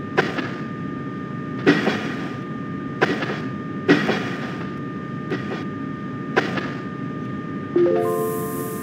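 Train wheels clack over rail joints every second or two.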